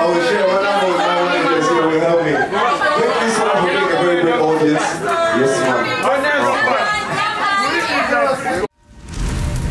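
A young man raps into a microphone with energy.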